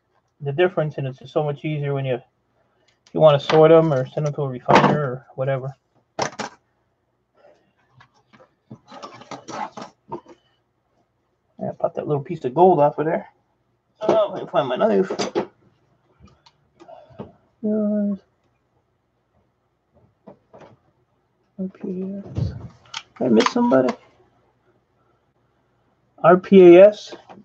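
Small metal parts click and clatter as they are handled.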